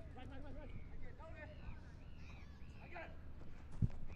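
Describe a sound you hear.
A football thuds as it is kicked on grass.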